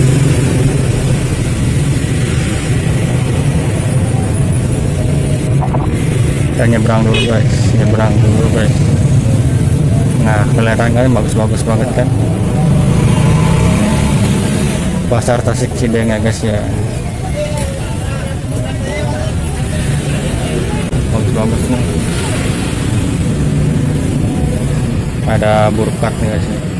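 Voices of many shoppers murmur in a crowded market.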